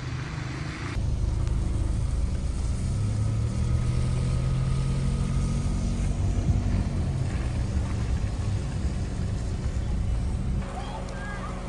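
A car engine hums low while driving.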